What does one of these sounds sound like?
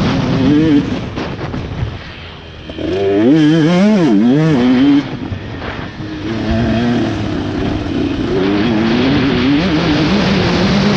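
A motocross bike engine revs and roars, rising and falling in pitch.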